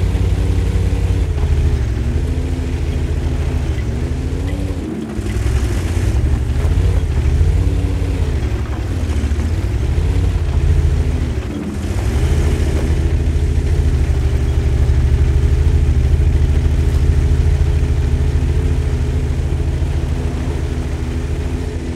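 A heavy tank engine rumbles, rising and falling in pitch as it revs.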